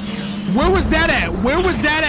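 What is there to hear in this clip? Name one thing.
A man shouts excitedly into a close microphone.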